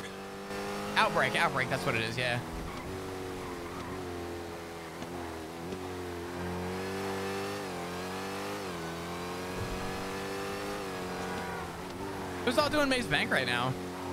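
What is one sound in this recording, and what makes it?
Car tyres screech on the road.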